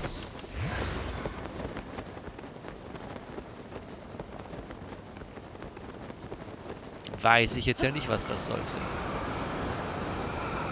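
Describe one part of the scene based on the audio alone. Wind rushes past during a fast glide.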